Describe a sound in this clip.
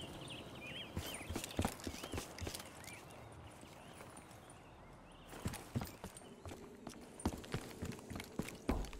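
Footsteps thud as a soldier runs.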